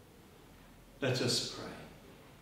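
An elderly man speaks briefly and solemnly in a small echoing room.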